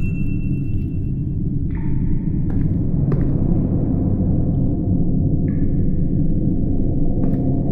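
Footsteps thud on wooden floorboards.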